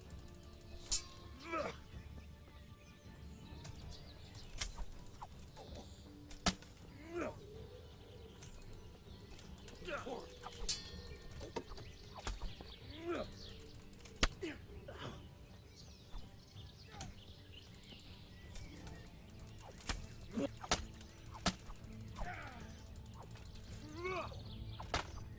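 Metal swords clash with sharp clangs.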